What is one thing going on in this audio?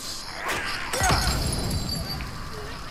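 A bottle shatters and fire bursts up with a loud whoosh.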